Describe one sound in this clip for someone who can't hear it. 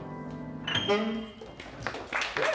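A piano chord rings out and fades.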